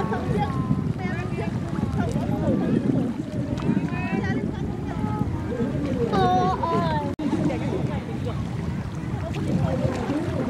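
Water laps and splashes around a floating board.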